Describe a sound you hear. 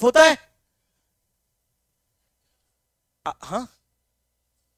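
A young man speaks in short bursts close to a microphone.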